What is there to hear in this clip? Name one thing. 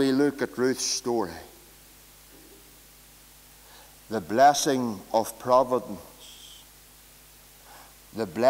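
A man speaks with emphasis through a microphone, in bursts with pauses.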